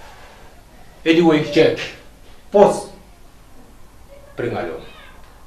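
A young man speaks forcefully in short bursts, close by.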